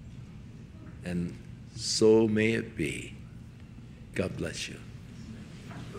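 A man speaks through a loudspeaker in a large echoing hall.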